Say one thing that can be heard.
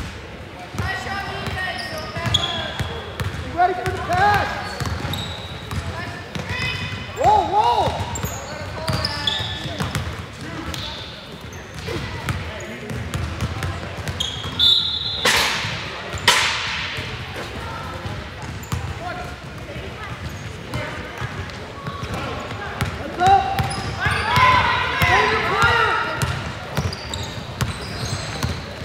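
A basketball bounces repeatedly on the floor.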